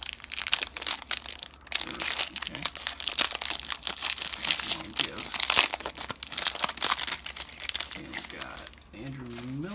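A foil wrapper crinkles and rustles as it is torn open close by.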